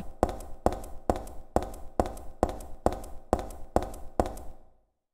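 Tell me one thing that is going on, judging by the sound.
Quick footsteps run across a hard floor, echoing in a large empty hall.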